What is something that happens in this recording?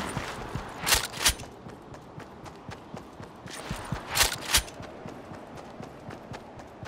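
Quick footsteps patter over snow and grass.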